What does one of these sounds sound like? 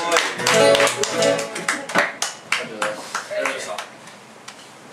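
A live band plays a song on guitars and keyboard and brings it to an end.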